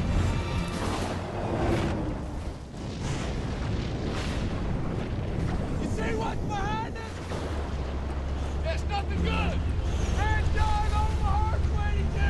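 Heavy truck engines rumble loudly.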